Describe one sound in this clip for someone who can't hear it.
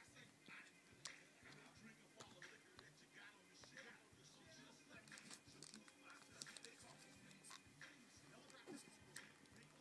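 A small plastic game console clicks and knocks as a hand moves it.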